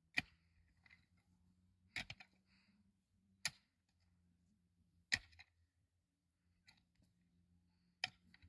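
A pickaxe strikes into stony soil.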